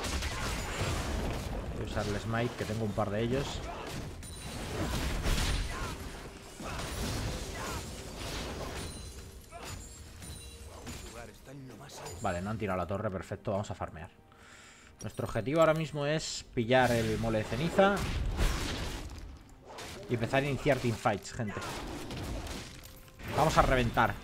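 Game combat effects clash and thud.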